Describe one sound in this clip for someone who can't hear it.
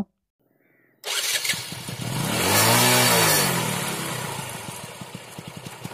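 A motorcycle engine starts and revs up briefly.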